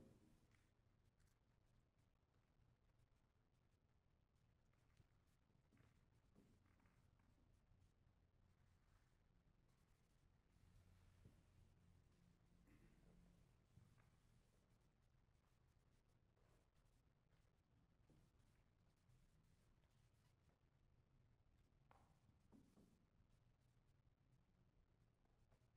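A piano plays softly in a hall with a gentle echo.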